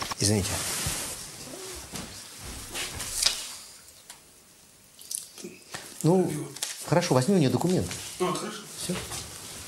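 A man speaks firmly and with animation close by.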